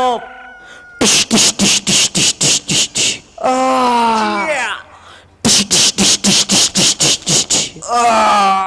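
Performers clap and stamp in a sharp, fast rhythm.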